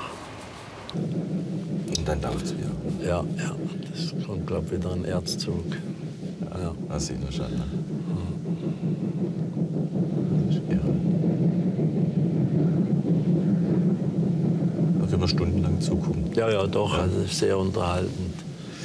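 Train wheels rumble and clatter on the rails.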